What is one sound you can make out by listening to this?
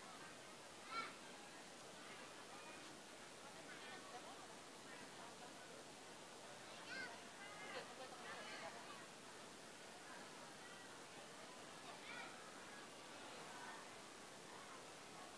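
A girl speaks into a microphone through loudspeakers, reading out calmly outdoors.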